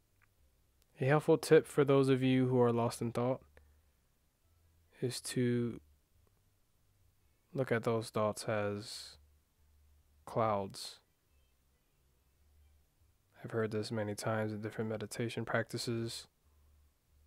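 A young man speaks softly and slowly, close to a microphone, with long pauses.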